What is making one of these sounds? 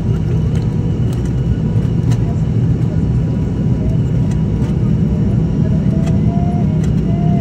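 A propeller plane's engines roar steadily from inside the cabin.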